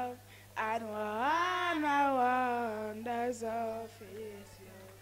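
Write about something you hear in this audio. A young girl sings into a microphone, heard through a loudspeaker.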